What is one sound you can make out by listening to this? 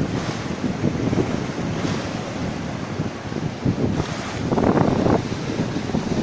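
Wind blows steadily outdoors, buffeting loudly.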